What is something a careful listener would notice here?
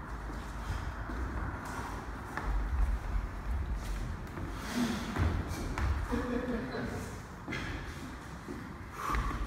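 Shoes scuff and thud on a wooden floor in an echoing hall.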